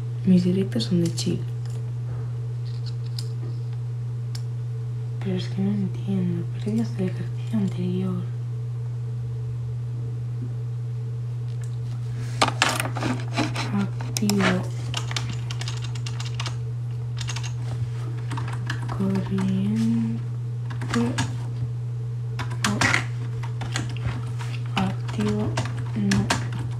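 A young woman talks casually and close to a phone microphone, in bursts with pauses.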